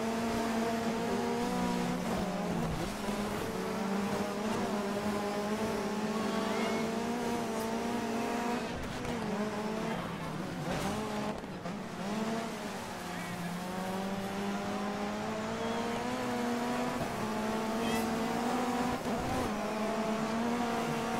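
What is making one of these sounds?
A rally car engine roars steadily, rising and falling in pitch as it shifts gears.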